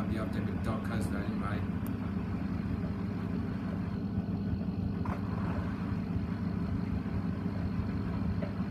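Water sloshes inside a washing machine drum.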